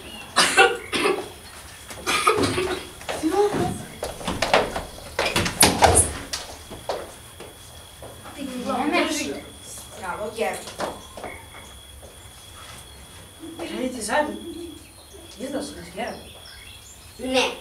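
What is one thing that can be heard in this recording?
Children and teenagers talk and call out with animation.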